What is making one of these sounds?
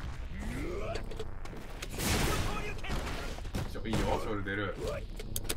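Video game fight sounds crackle and whoosh with loud bursts.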